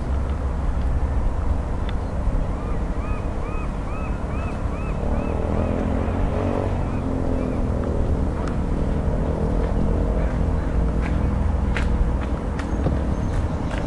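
Water laps gently against rocks nearby.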